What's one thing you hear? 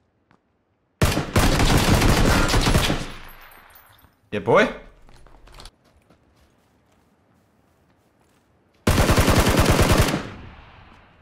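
A rifle fires rapid bursts of shots that ring out.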